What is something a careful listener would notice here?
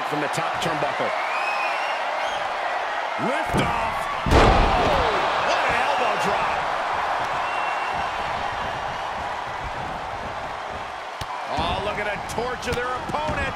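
A large crowd roars and cheers steadily throughout.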